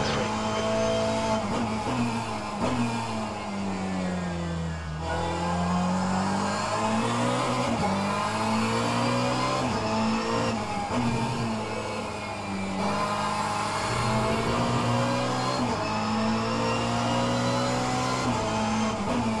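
A racing car engine roars, rising and falling in pitch as it revs up and shifts gears.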